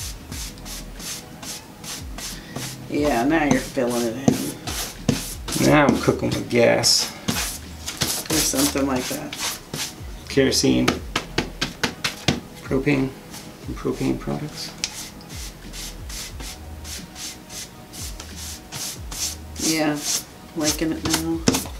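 A paintbrush scrubs rapidly across a board.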